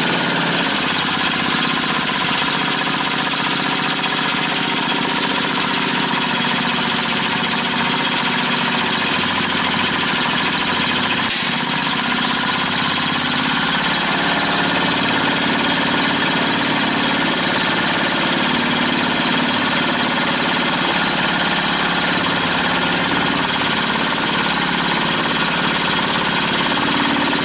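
A small petrol engine runs close by with a steady chugging hum that shifts in pitch now and then.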